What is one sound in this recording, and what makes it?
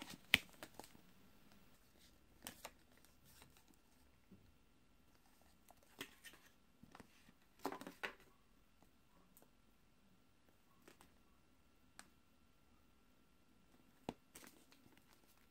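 Fingers tap and rub against a cardboard box.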